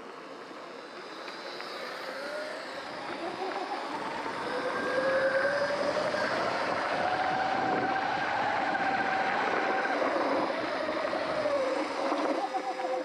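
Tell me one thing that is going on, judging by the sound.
An electric motor whines, rising and falling in pitch as a bike speeds up.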